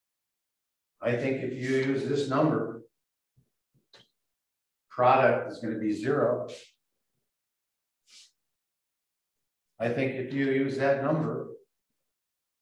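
An elderly man speaks calmly, as if explaining, in short bursts.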